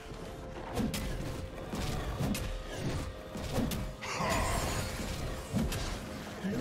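Game characters clash in combat with sharp hits and spell effects.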